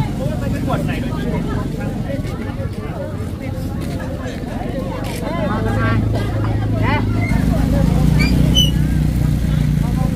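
Men and women talk nearby in a lively crowd.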